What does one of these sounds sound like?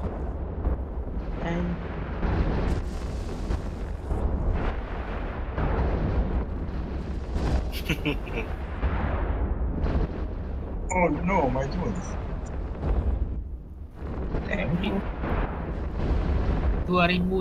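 Laser weapons fire in repeated humming bursts.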